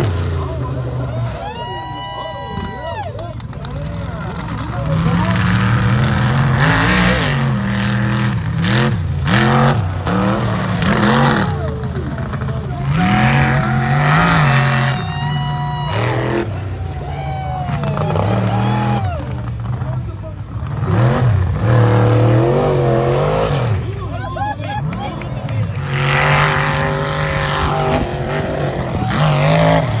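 Big truck engines roar loudly and rev up and down.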